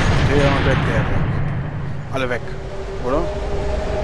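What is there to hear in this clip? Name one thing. A bullet whooshes slowly through the air with a deep rumble.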